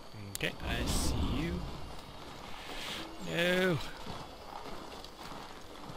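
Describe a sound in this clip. A man's footsteps crunch quickly on snow.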